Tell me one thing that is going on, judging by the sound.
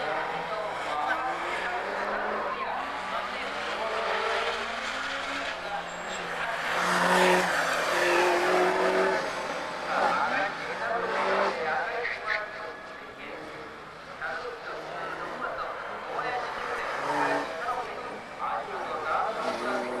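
A race car engine revs and roars, rising and falling in pitch as it corners.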